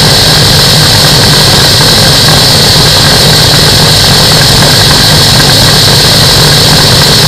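Wind rushes hard past in the open air.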